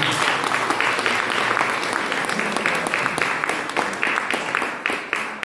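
An acoustic guitar is strummed quickly and rhythmically.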